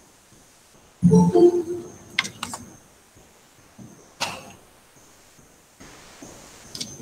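An elderly man speaks calmly over a microphone, heard through an online call.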